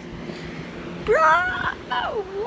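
A boy shouts loudly close to the microphone.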